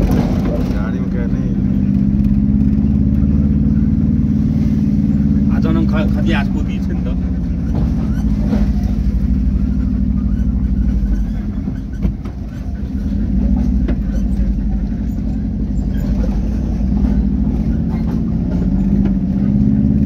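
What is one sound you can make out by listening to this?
A car's engine hums from inside the cab as it drives along a road.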